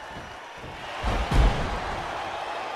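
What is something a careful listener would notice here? A heavy body slams hard onto a wrestling ring mat.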